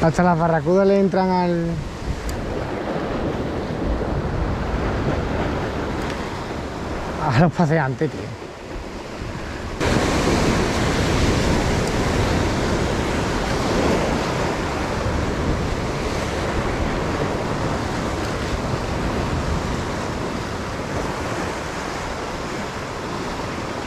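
Waves surge and crash against rocks close by.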